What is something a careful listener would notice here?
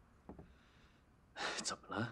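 A young man speaks, close by.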